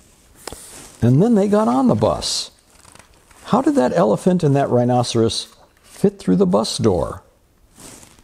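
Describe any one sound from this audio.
A man reads aloud with animation, close to a microphone.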